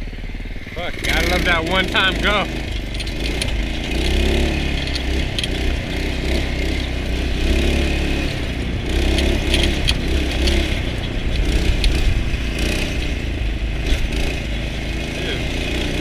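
A small petrol engine revs loudly as a go-kart drives along.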